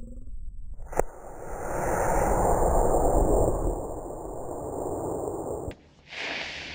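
A model rocket roars loudly as it launches and climbs away.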